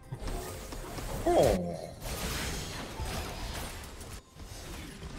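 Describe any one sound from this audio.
Game spell effects whoosh and clash in a fast battle.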